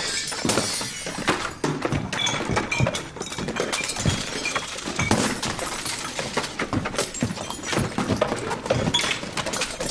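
Small objects clatter and bounce on a concrete floor.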